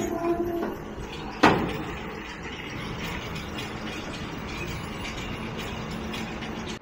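A tractor engine rumbles steadily as it drives away.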